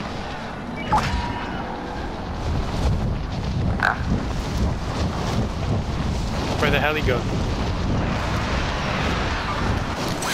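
Wind rushes loudly and steadily past during a fast fall through the air.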